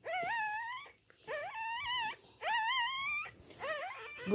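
A dog whines close by in long, high, wavering cries.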